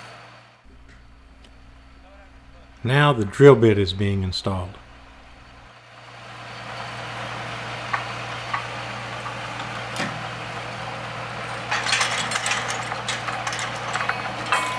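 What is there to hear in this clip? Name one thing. A truck engine idles with a steady low hum.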